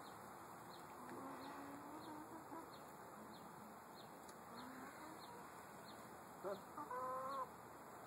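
Hens cluck softly close by.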